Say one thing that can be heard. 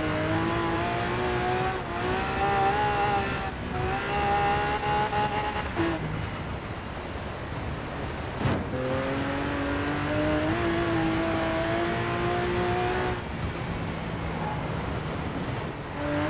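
A car engine revs hard, climbing in pitch and dropping briefly with each gear change.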